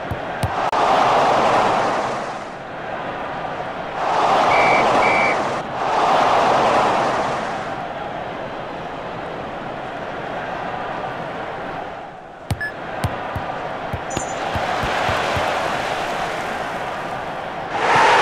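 A stadium crowd roars and murmurs, swelling loudly and falling back in waves.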